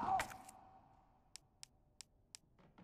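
Soft menu clicks sound.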